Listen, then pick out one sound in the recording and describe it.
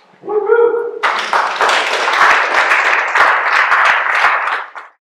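A group of people clap and cheer loudly.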